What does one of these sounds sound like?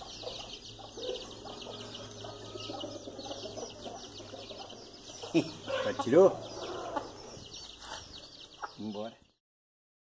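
A hen clucks softly.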